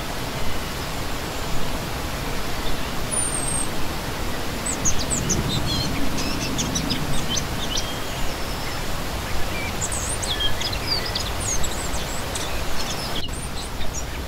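A shallow stream rushes and splashes steadily over rocks close by.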